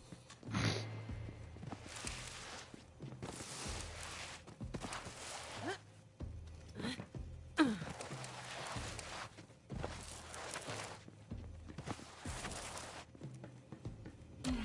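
Footsteps crunch on hard ground.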